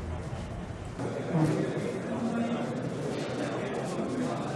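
A middle-aged man talks quietly close by.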